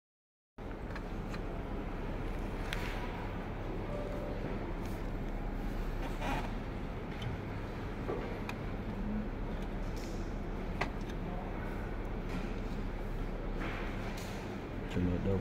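A screwdriver clicks and scrapes against metal parts inside a machine.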